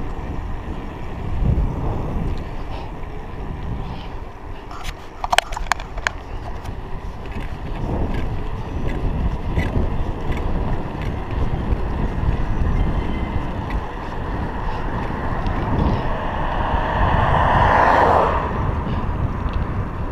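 Wind rushes and buffets against the microphone.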